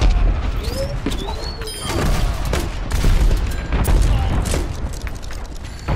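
Gunfire bursts rapidly from a weapon.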